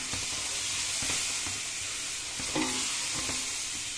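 Liquid pours and trickles into a pan.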